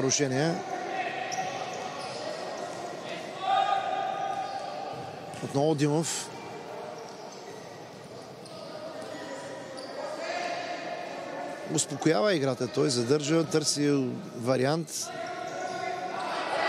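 A ball is kicked hard on an indoor court.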